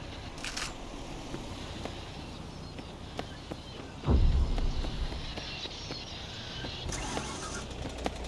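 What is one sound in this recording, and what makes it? Footsteps patter on the ground.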